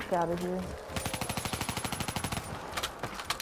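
A rifle fires in a rapid automatic burst.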